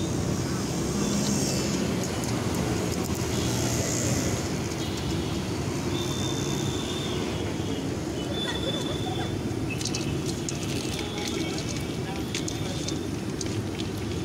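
Hands toss noodles in a metal bowl, rustling and scraping.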